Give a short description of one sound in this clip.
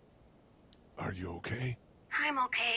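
A man asks a question calmly, close by.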